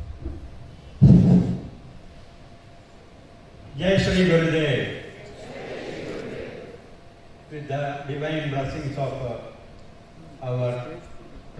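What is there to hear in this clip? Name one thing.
An elderly man reads out over a loudspeaker in a large echoing hall.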